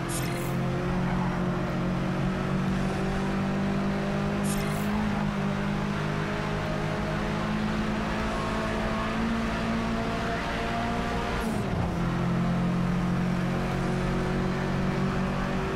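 Tyres hiss on the road.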